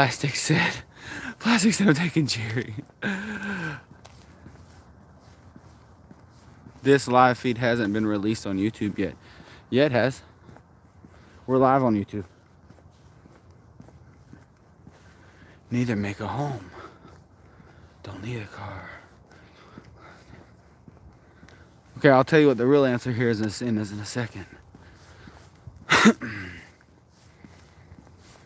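Footsteps fall steadily on a paved path.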